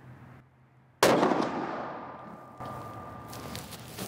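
A rifle shot cracks loudly outdoors and echoes away.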